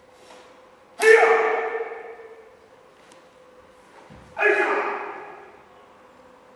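A man lets out sharp, loud shouts that echo around a large hall.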